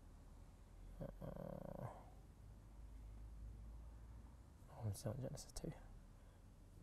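A man speaks quietly in short bursts.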